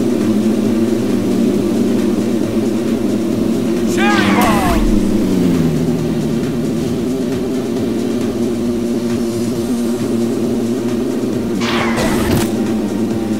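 A small kart engine hums steadily.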